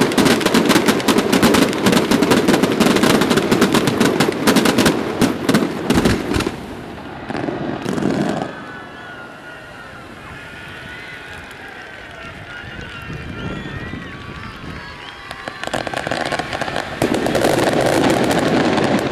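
Fireworks crackle and bang rapidly, loud and close.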